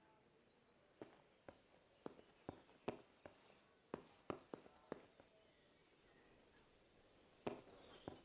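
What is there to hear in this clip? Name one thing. Footsteps crunch softly on straw.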